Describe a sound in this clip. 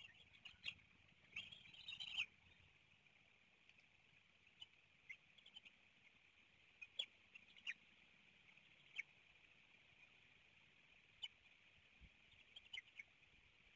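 Eaglets chirp in short, high peeps.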